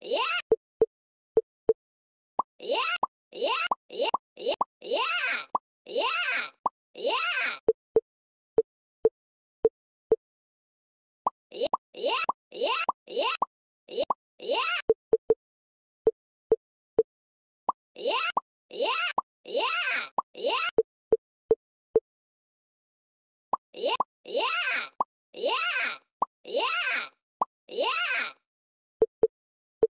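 Short electronic blips sound again and again as game pieces are placed and merged.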